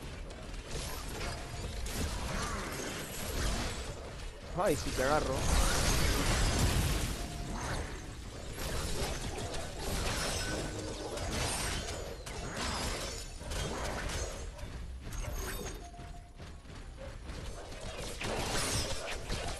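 Game weapons fire and blasts crackle.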